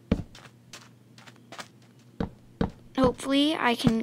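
A wooden block is placed with a soft knock.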